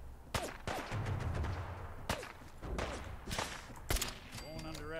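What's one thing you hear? A rifle fires loud single shots, several times.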